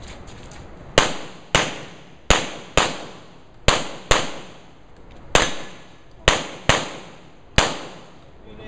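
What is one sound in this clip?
Pistol shots ring out in quick bursts outdoors, each echoing briefly.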